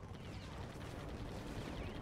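Gun turrets fire in quick bursts.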